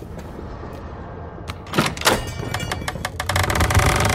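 A metal door handle clicks.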